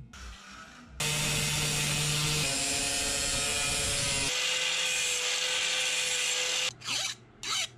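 An angle grinder whines steadily as it grinds metal.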